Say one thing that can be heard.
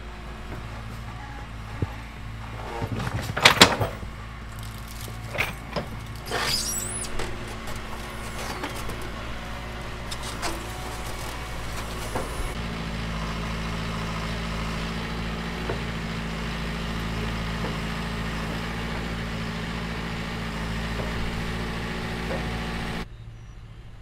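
A tractor's diesel engine rumbles steadily close by.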